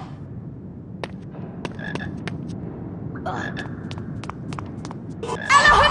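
Footsteps tap on a stone floor in an echoing tunnel.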